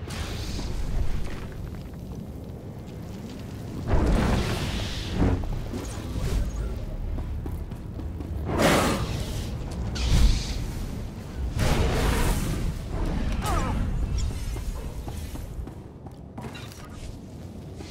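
Laser swords hum and clash in a fight.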